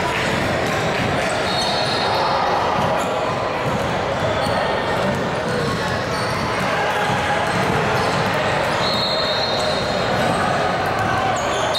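Players and onlookers call out and chatter in a large echoing hall.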